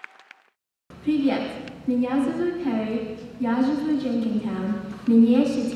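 A young woman sings clearly into a microphone in a large hall.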